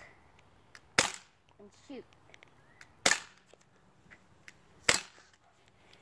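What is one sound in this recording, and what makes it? A pistol fires sharp, loud shots outdoors, one at a time.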